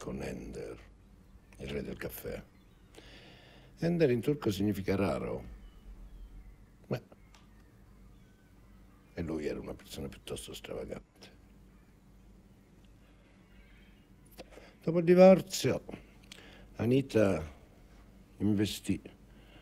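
A middle-aged man speaks calmly and slowly, close by.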